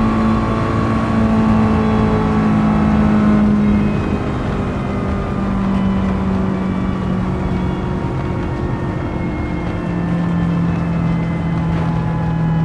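Wind and tyres roar steadily.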